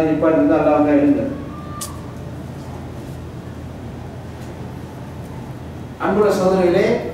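A man chants in long, drawn-out tones, loud and close.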